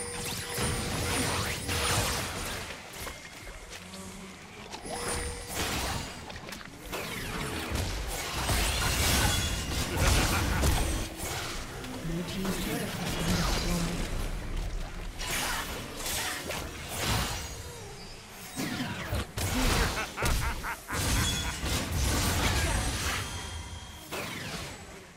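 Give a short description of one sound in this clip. Magic spells burst and whoosh in a fast game battle.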